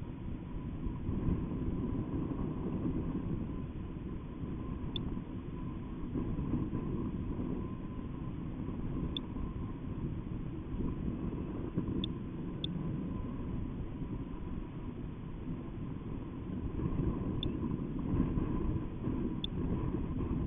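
Wind rushes and buffets steadily, high in the open air.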